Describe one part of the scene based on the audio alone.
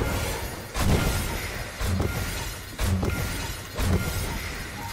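Loud thuds from a game repeat at a steady pace.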